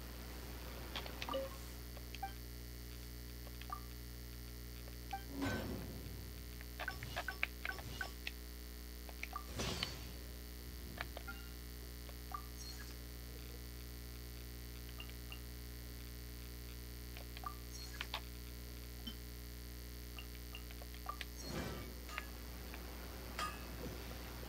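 Short electronic menu clicks and chimes sound now and then.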